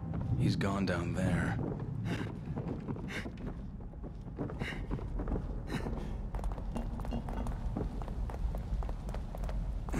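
Footsteps thud on wooden stairs and stone floors.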